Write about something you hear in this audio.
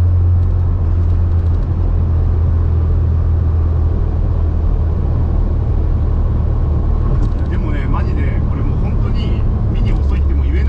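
A small car engine drones steadily while driving.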